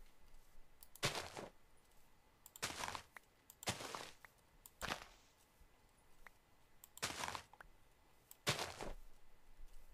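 Short rustling crunches sound as plants are broken one after another.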